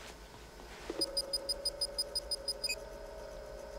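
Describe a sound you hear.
A computer beeps in a quick, even rhythm.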